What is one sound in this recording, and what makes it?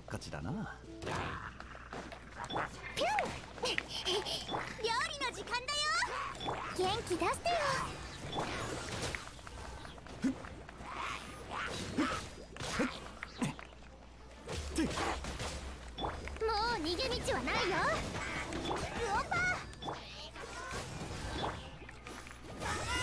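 Sword slashes and magic blasts hit again and again.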